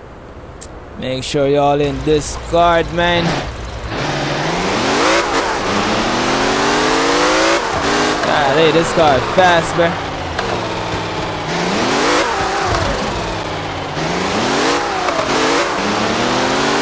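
A car engine revs up and down, rising and falling repeatedly in pitch.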